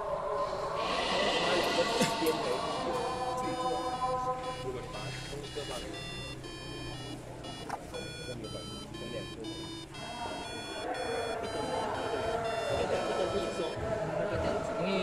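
A small loudspeaker plays a simple electronic beeping tune.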